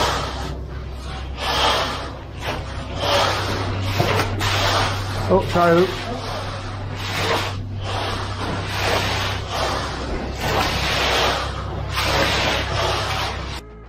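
A rake scrapes and drags through wet gravelly concrete in repeated strokes.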